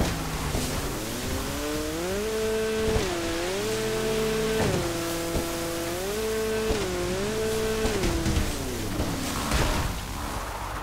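A jet ski engine whines and revs up and down.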